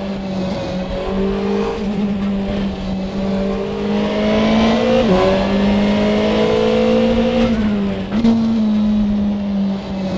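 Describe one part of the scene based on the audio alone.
A racing car engine drones steadily, rising and dipping in pitch as it shifts gears.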